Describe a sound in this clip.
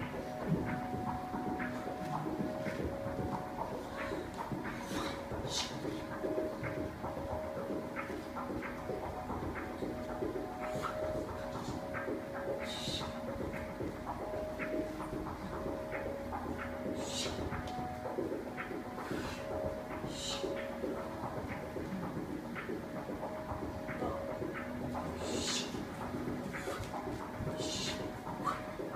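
Bare feet thud and shuffle on a hard floor.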